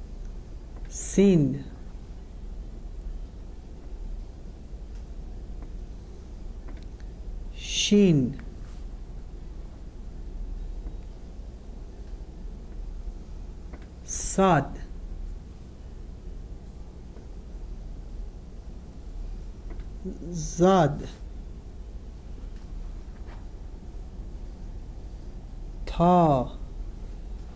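A man says single words aloud, with pauses between them.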